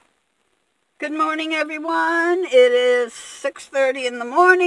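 An elderly woman talks calmly, close by.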